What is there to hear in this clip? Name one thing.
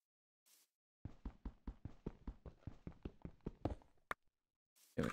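A pickaxe chips rapidly at stone.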